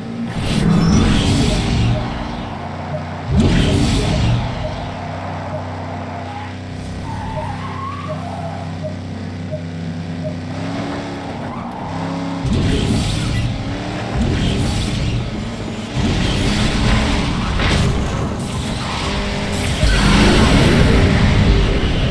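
A racing car engine roars and hums steadily.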